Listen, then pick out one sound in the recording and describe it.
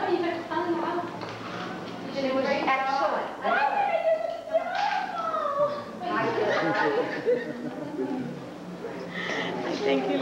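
Several women talk and chatter nearby.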